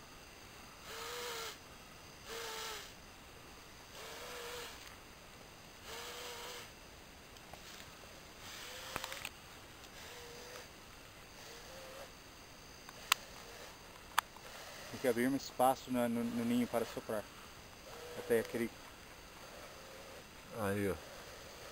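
A man blows into his cupped hands, making breathy, hooting calls again and again.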